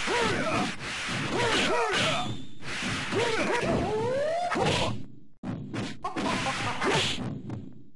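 Electronic game music plays.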